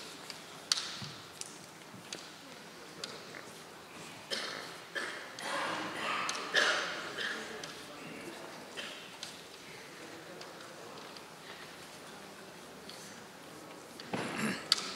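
Bamboo kendo swords clack together in an echoing hall.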